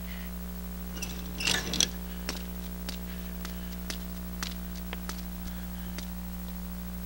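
Footsteps thud and clatter on a hard floor.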